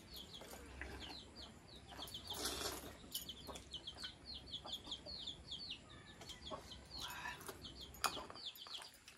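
Metal bowls clink and scrape against each other.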